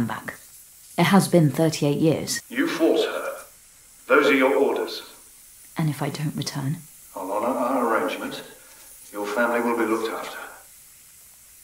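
A middle-aged man speaks in a calm, firm voice.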